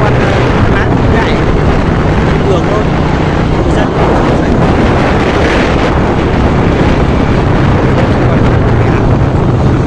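A car engine drones steadily while driving.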